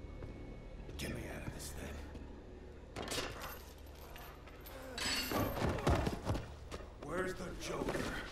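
A man shouts in a strained, pleading voice.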